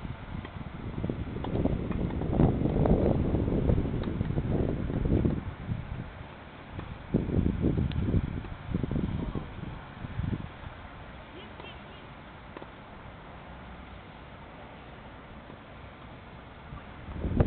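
A tennis racket strikes a ball again and again outdoors.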